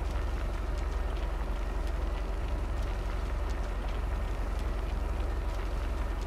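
Grain pours and rattles out of a tipping trailer.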